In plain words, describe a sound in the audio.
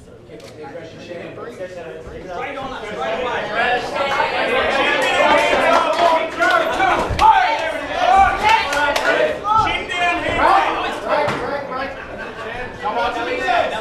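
A crowd cheers and shouts loudly in a large room.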